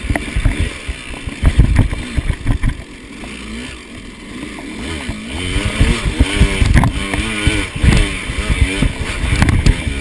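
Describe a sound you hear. A two-stroke dirt bike engine revs up and down on a trail.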